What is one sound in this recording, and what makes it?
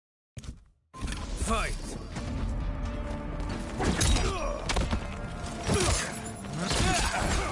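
Heavy punches and kicks land in a fight.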